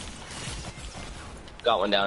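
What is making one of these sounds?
A pickaxe swings through the air with a whoosh.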